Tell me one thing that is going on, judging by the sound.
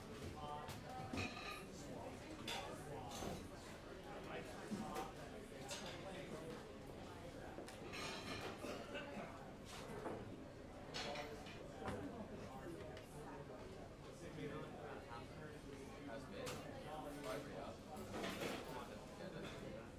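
Drums and cymbals play a light jazz beat with sharp cymbal hits.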